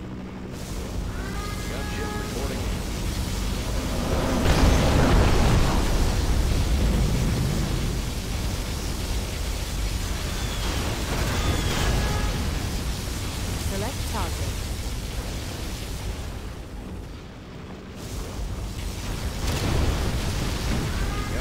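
Beam weapons hum and crackle as they strike the ground.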